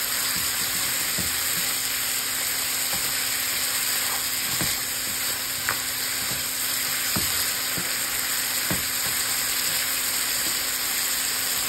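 A spatula scrapes and knocks against a pan.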